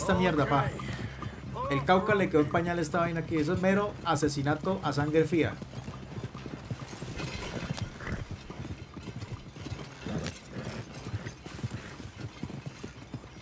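Horse hooves clop steadily.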